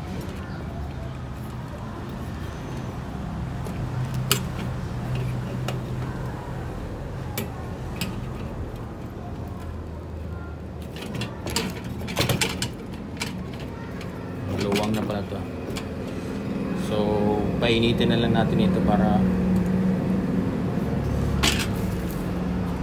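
Metal parts click and clank as hands handle them.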